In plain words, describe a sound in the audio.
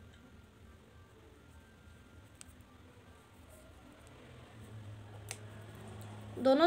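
A crochet hook softly clicks and rustles against yarn.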